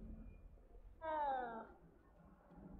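A cat meows with a falling cry.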